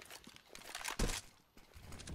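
A heavy rifle shot booms.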